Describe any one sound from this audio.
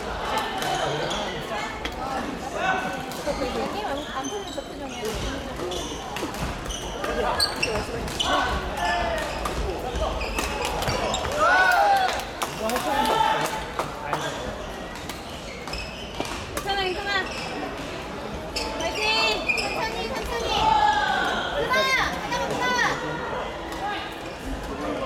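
Young men and women chatter and call out nearby in an echoing hall.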